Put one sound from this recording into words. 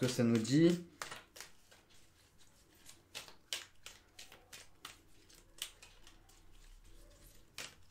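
A plastic case clicks and rattles in a man's hands.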